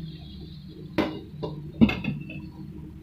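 A glass lid clinks onto a pan.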